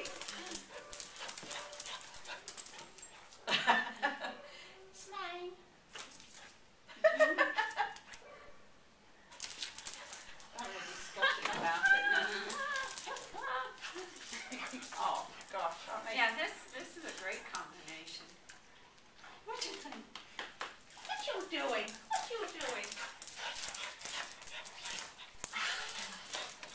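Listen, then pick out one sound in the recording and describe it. Dog claws click and scuffle on a hard floor.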